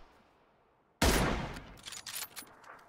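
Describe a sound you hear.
A single loud rifle shot cracks and echoes away.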